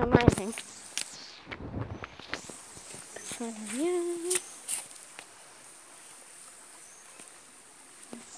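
A shallow stream trickles softly over stones.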